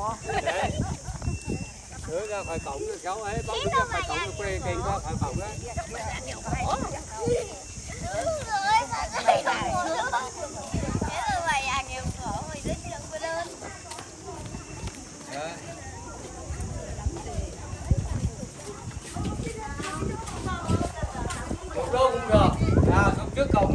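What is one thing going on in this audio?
A group of men, women and children chatter nearby.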